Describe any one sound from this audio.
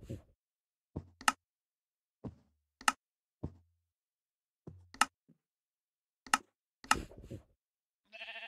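Game menu buttons click sharply several times.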